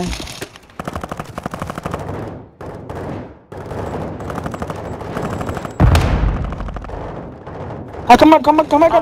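A rifle fires in rapid bursts close by.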